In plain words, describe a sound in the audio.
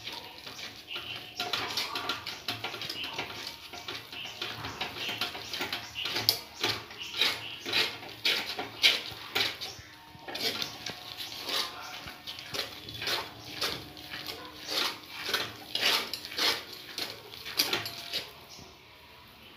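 A metal spoon scrapes and stirs against a metal pan.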